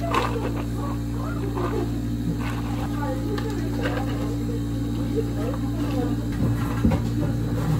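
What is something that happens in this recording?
Water pours over ice in a plastic cup.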